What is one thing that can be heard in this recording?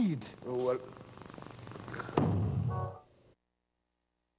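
A man speaks tensely in an old, muffled recording.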